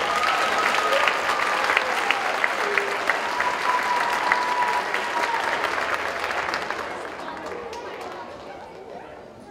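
An audience applauds and cheers loudly in a large hall, then fades away.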